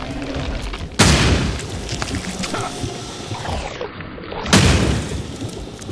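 A gun fires twice with loud bangs.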